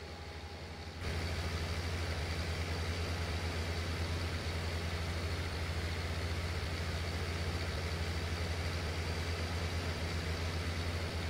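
A tractor engine rumbles louder from outside as it drives along.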